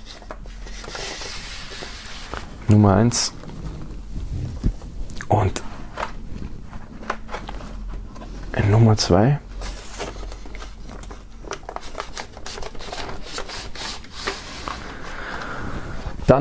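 Cardboard record sleeves slide and rustle as hands handle them.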